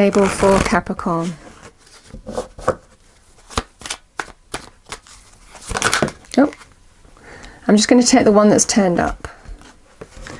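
Playing cards riffle and slap together as they are shuffled.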